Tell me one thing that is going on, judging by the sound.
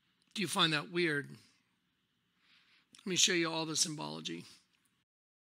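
An older man speaks through a microphone, heard from a played clip.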